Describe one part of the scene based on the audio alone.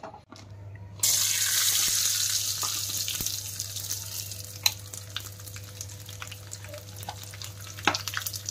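Food sizzles and crackles in hot oil in a pan.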